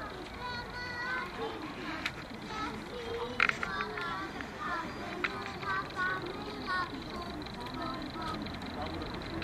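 A small group of people talks faintly in the distance outdoors.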